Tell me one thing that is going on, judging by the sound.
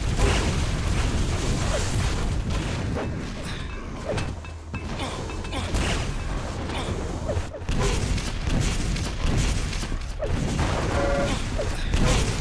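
Rockets explode with loud booms.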